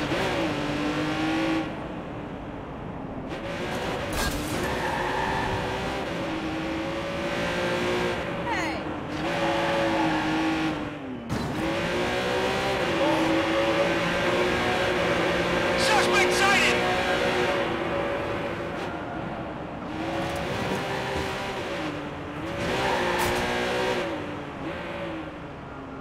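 A sports car engine roars and revs up and down as it speeds along.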